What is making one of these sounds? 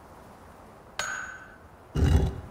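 A game chime rings as a stone moves into place.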